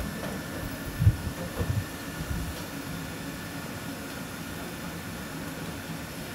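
A wheeled cart rolls and rattles across a floor.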